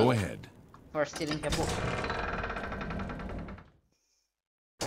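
A heavy wooden gate door creaks open.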